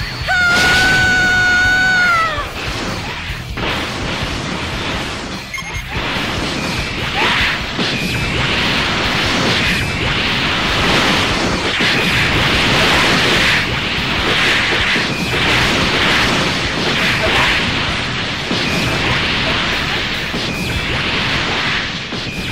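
Energy blasts whoosh and crackle in a video game fight.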